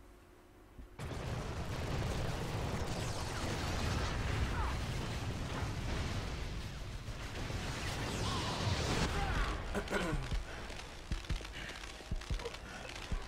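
Heavy gunfire and explosions boom in a video game battle.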